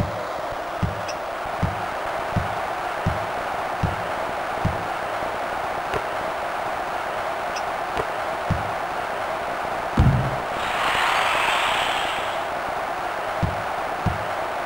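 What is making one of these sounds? A crowd murmurs steadily.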